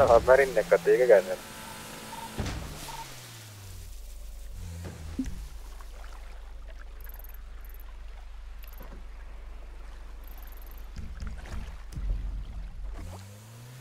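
A motorboat engine drones and revs.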